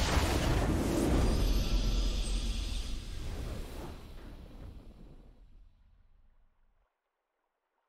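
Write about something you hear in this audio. A triumphant game fanfare swells and then fades to silence.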